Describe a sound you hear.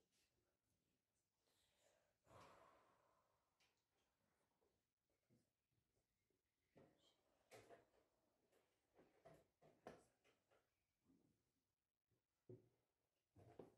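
Chess pieces clack onto a wooden board.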